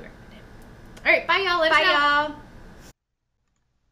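Two young women call out excitedly together.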